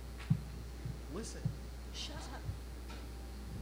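A young woman speaks on a stage.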